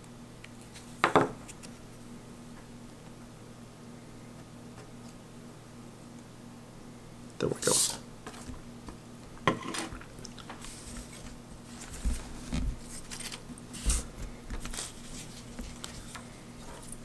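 Small wooden pieces knock and tap lightly on a tabletop.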